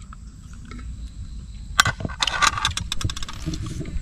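A spoon scrapes against a metal pan.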